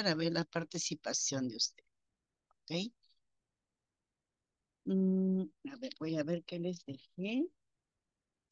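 A woman speaks with animation over an online call.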